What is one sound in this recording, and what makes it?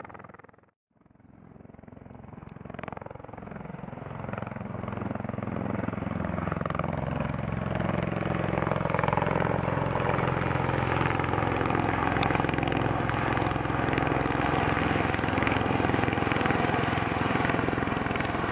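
Aircraft rotors drone overhead and grow louder as the aircraft comes closer.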